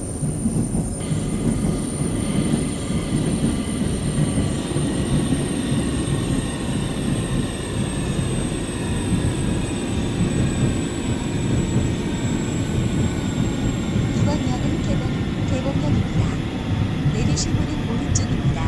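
An electric train motor whines, its pitch slowly shifting.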